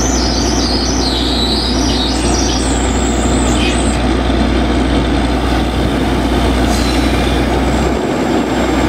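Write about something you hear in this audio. Water gushes and splashes from a borehole.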